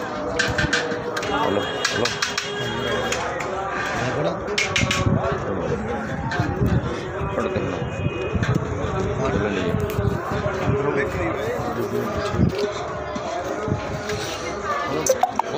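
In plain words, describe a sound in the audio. Several men talk with animation close by.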